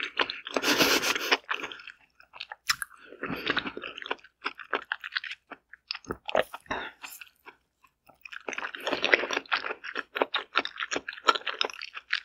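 A pickle crunches loudly as it is bitten, close to a microphone.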